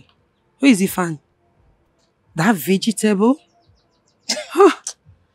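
A woman speaks close by, loudly and with attitude.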